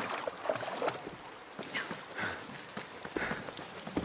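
Footsteps run on stone.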